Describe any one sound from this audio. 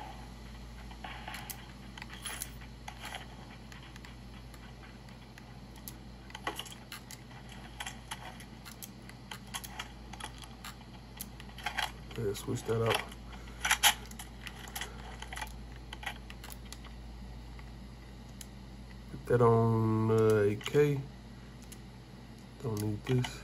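Fingers click buttons and thumbsticks on a handheld console.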